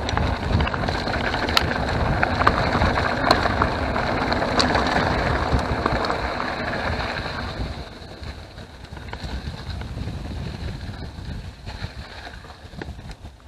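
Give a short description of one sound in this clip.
Wind rumbles past a moving bicycle.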